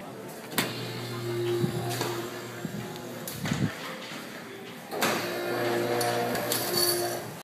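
A metal window opener creaks and clicks.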